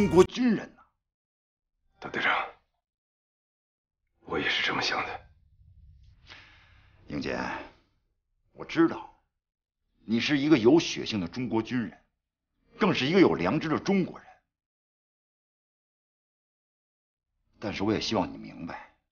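A middle-aged man speaks earnestly, close by.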